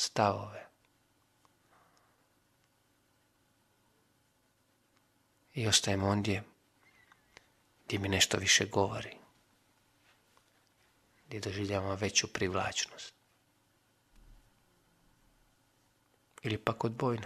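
A man speaks calmly into a close microphone, with pauses between phrases.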